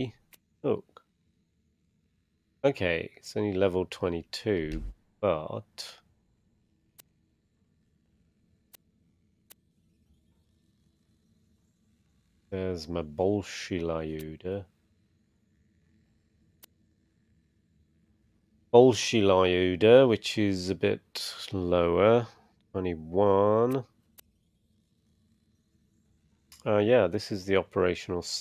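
A man speaks calmly and close into a microphone, in bursts with pauses.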